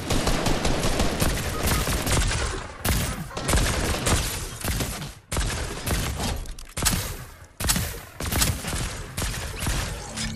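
Gunshots fire in quick, loud bursts.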